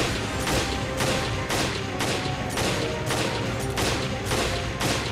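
Gunshots ring out again and again at a quick, steady pace.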